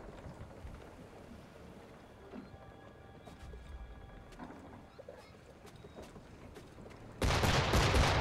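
Water washes against a wooden hull.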